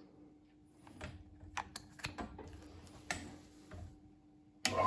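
Metal parts click and clatter as they are fitted together.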